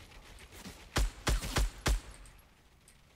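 A rifle fires several quick shots.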